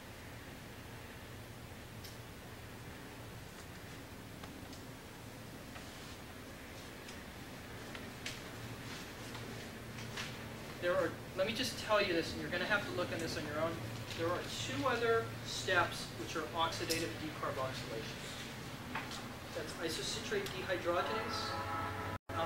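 A projector fan hums steadily.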